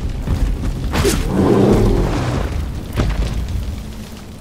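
A large beast bellows loudly.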